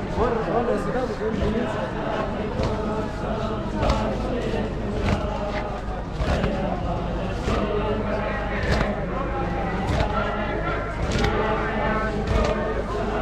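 A large crowd of men chants together outdoors.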